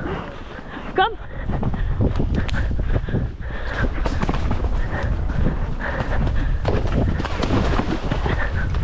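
A horse snorts and breathes hard.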